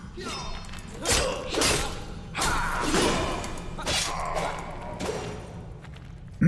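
Blows thud and clang in a fight.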